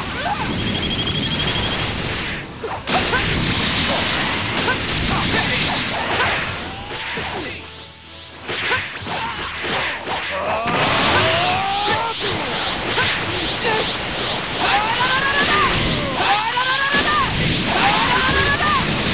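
Energy blasts and punches crash and boom in a video game fight.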